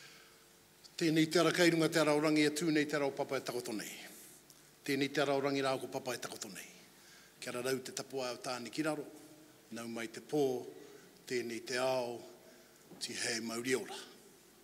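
A middle-aged man speaks with animation into a microphone in a large echoing hall.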